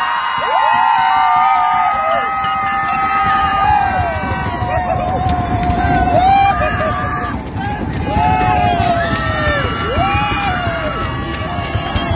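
A large crowd sings together in the open air.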